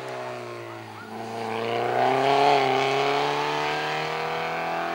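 A rally car's engine revs again as it pulls away.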